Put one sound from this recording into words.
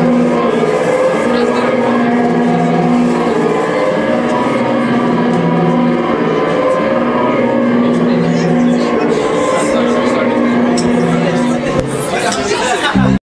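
Electric guitars play a loud rock song.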